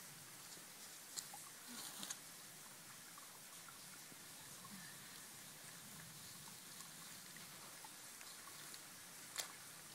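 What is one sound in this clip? Hands scrape and dig in wet mud.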